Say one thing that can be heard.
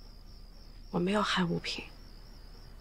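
A young woman speaks briefly and softly.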